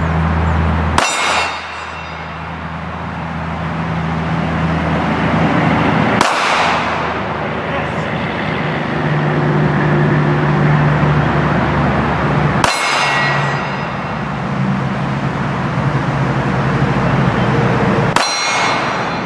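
A handgun fires single loud shots that echo outdoors.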